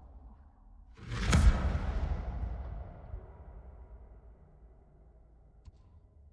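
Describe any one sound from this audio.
A soft chime rings out and slowly fades.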